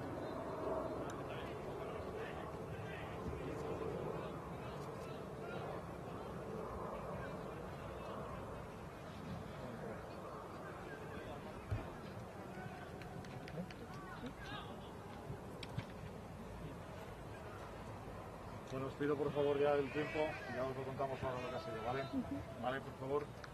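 Several men talk in low voices nearby outdoors.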